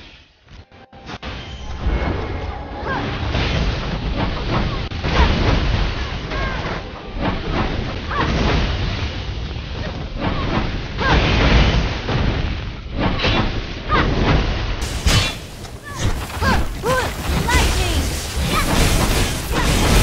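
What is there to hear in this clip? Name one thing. Weapons clash and blasts burst in a fast fight.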